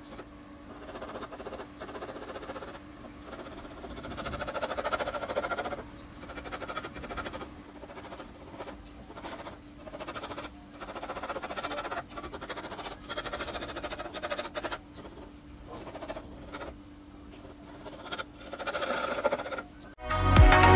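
A pencil scratches and shades across paper.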